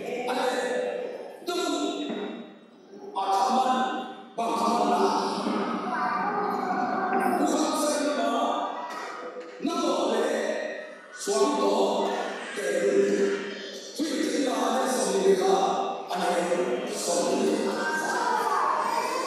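A man speaks with animation into a microphone, heard through loudspeakers in a room.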